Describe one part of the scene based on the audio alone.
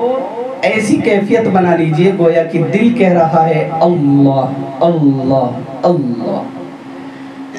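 A man chants loudly and with feeling into a microphone.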